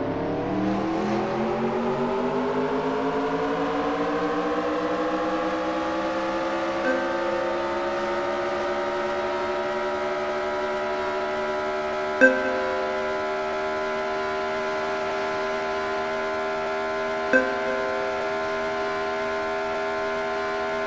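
A video game race car engine accelerates, rising in pitch and then holding high.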